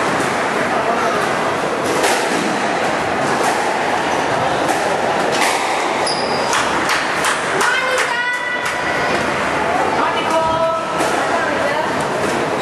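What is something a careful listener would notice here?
A squash ball smacks sharply against walls and rackets in an echoing court.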